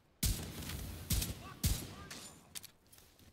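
Loud explosions boom in quick succession.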